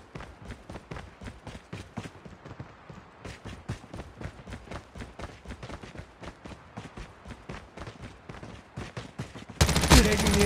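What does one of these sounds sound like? Quick footsteps run over dirt and pavement.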